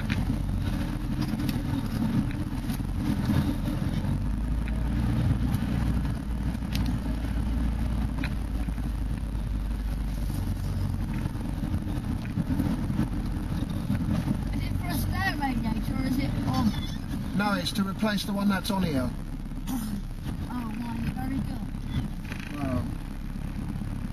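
A vehicle engine rumbles low and steady while driving over rough ground.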